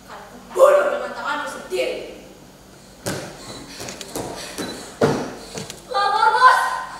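A woman's voice rings out on a stage in an echoing hall.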